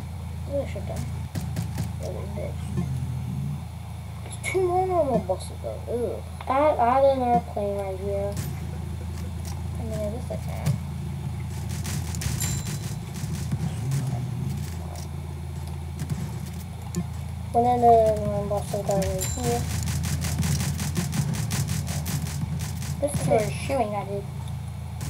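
A boy talks with animation, close to a microphone.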